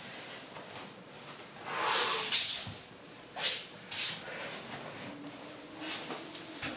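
A body shifts and rubs on a soft mat.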